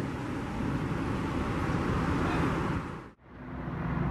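A heavy truck engine rumbles as the truck rolls past close by.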